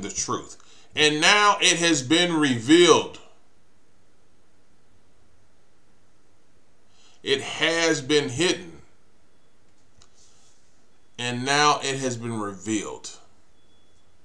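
A middle-aged man speaks calmly into a nearby microphone, in short bursts with pauses.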